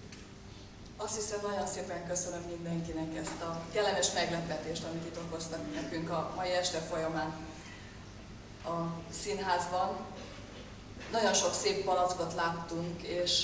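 A woman sings solo into a microphone.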